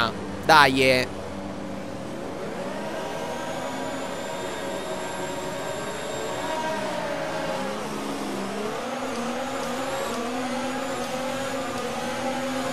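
A racing car engine revs high and roars as it accelerates.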